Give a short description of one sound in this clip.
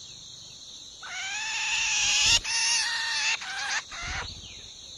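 A bird gives loud, harsh, chattering calls close by.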